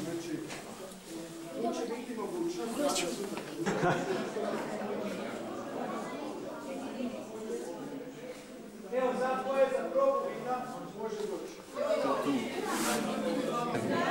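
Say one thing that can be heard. A crowd of men and women talk at once, echoing in a vaulted room.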